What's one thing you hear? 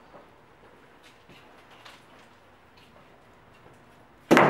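Footsteps sound softly on a floor.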